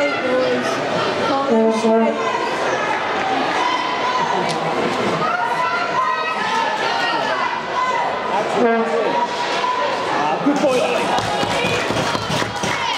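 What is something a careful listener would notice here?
Spectators shout and cheer in an echoing indoor ice rink.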